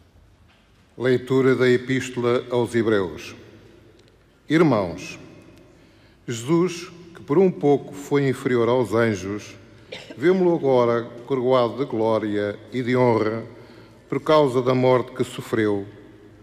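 An elderly man reads out calmly through a microphone in a large echoing hall.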